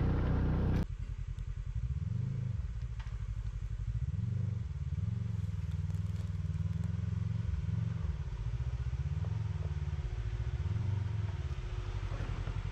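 An off-road vehicle's engine rumbles low and revs up and down as it climbs over rocks.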